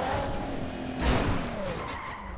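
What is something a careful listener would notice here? A car crashes with a loud bang.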